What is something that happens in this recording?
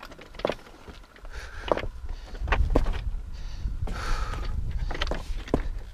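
Footsteps scrape and crunch on rock.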